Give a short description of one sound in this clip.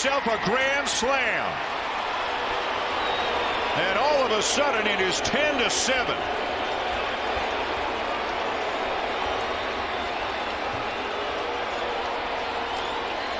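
A large stadium crowd cheers and roars loudly.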